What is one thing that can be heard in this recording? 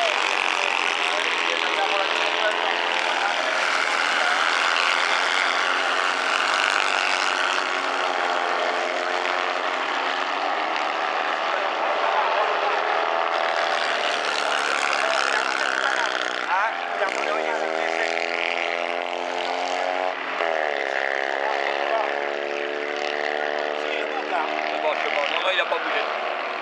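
Several racing car engines roar and rev.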